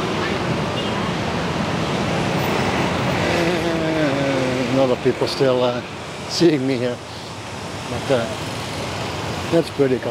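Traffic hums on a city street.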